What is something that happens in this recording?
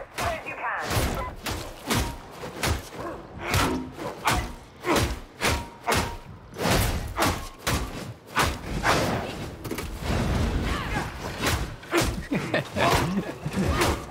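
Heavy blows thud wetly into a body again and again.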